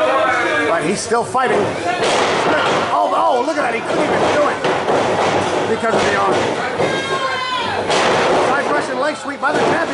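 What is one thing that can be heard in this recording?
Bodies thud heavily onto a wrestling ring's mat.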